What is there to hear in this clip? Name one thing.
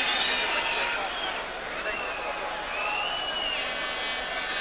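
Fans in a stadium crowd whistle shrilly.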